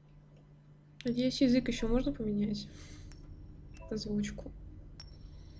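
A young woman speaks briefly with animation, close to a microphone.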